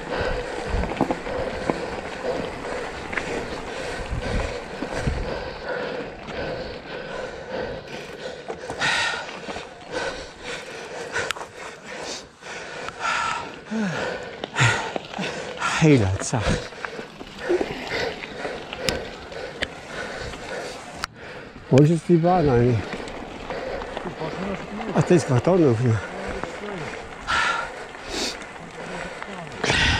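Bicycle tyres crunch and rattle over loose gravel.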